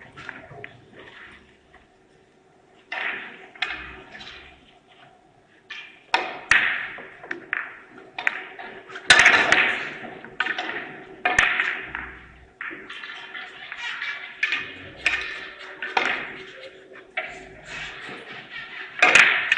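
Billiard balls click sharply against each other and the cue.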